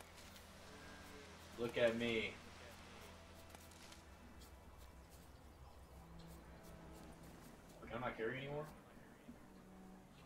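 Footsteps rustle through tall grass and bushes.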